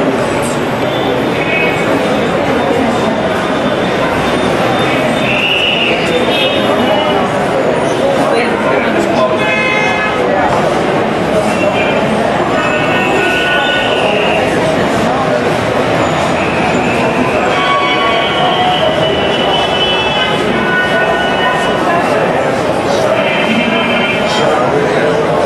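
A crowd of adults chatters and murmurs close by in an echoing room.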